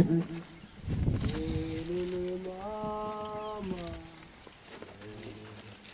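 An elderly man chants slowly into a microphone.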